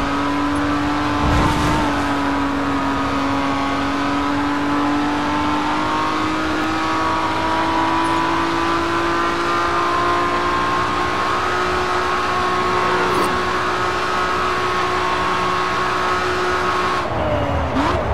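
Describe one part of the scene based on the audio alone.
A racing car engine roars steadily, its pitch slowly climbing as it speeds up.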